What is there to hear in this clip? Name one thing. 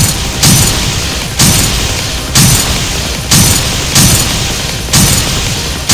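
Upbeat electronic game music plays with a steady, pounding beat.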